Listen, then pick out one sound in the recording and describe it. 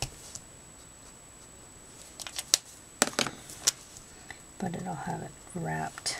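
A felt-tip marker strokes softly across paper.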